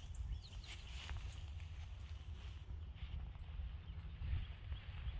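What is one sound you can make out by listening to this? A wild boar trots across soft dirt.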